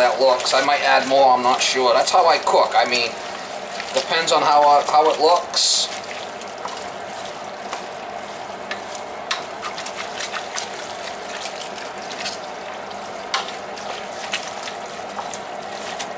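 A spoon stirs and scrapes through ground meat in a steel pot.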